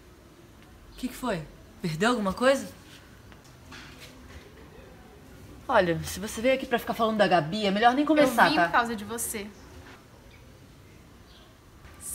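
A second young woman answers in a calm voice.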